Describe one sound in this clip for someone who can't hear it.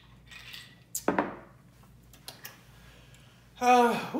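A glass knocks down onto a countertop.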